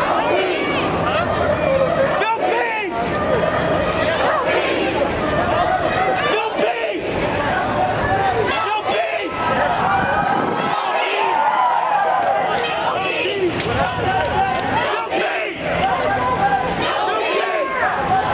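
A large crowd of marchers chants and shouts outdoors.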